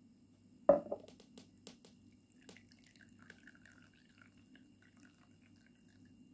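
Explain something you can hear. Tea trickles softly from a glass pitcher into a glass cup.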